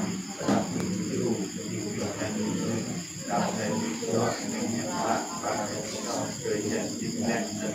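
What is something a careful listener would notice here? A group of men and women chant together.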